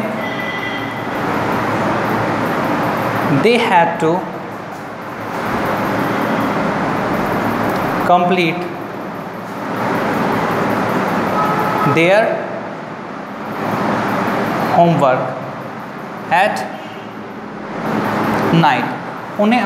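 A marker squeaks and scratches across a whiteboard.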